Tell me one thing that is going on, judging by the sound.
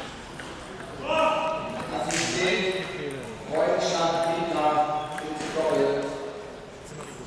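A man shouts and cheers loudly.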